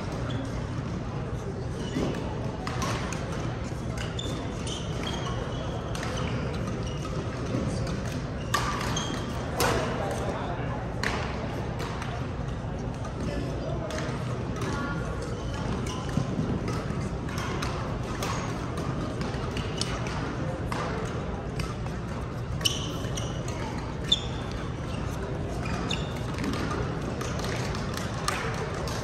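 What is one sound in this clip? Badminton shuttlecocks are struck with sharp pops, echoing through a large hall.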